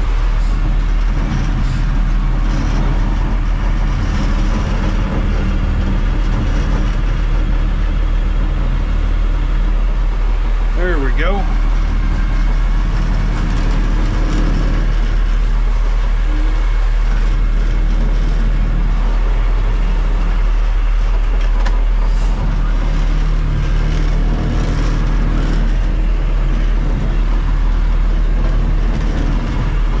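A truck's cab rattles and creaks as it rolls over rough gravel.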